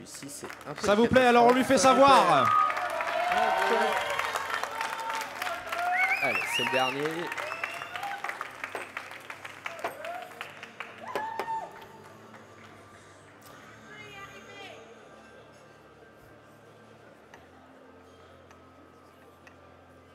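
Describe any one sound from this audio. Cups clink on a table.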